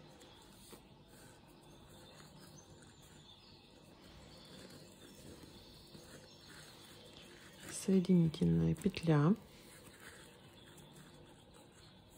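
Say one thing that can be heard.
Coarse twine rustles softly as a crochet hook pulls it through stitches.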